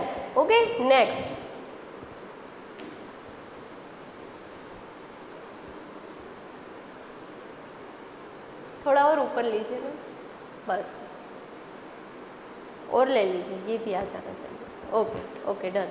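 A woman speaks clearly, explaining in pauses.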